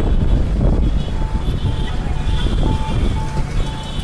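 A motorbike engine passes close by.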